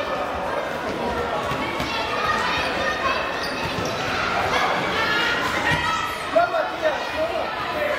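A ball thuds against a hard floor.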